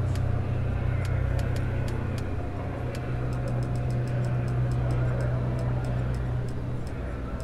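Soft interface ticks click quickly again and again.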